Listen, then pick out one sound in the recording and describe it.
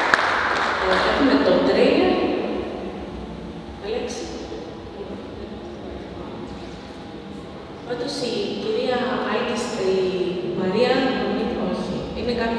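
A woman speaks into a microphone over loudspeakers.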